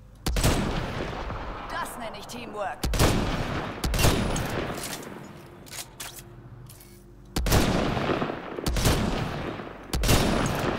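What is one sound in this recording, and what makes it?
Rifle shots crack loudly, each followed by a long echoing boom.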